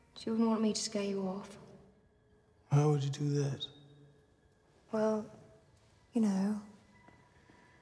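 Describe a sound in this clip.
A young woman speaks softly up close in short phrases.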